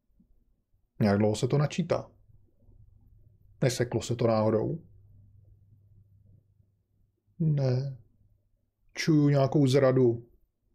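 A middle-aged man speaks calmly into a close microphone in short phrases.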